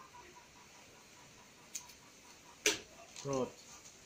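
Scissors snip.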